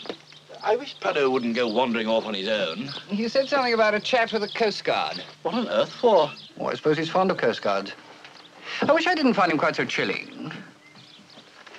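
Middle-aged men talk with animation nearby.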